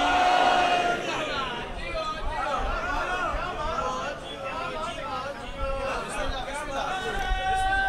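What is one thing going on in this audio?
A man chants rapidly with animation through a microphone.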